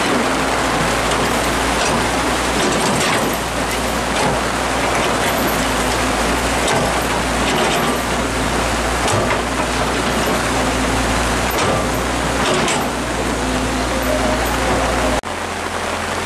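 An excavator engine rumbles steadily.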